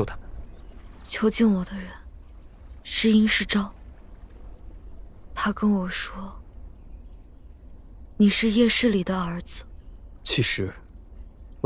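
A young woman speaks softly, close by.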